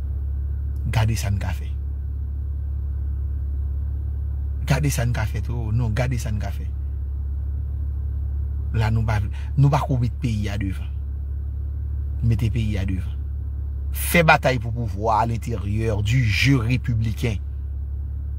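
A man speaks close to the microphone in short bursts, with pauses.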